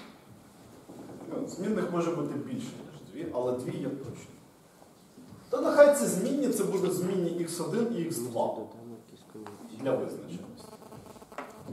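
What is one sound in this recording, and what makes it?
A man speaks calmly, lecturing in an echoing room.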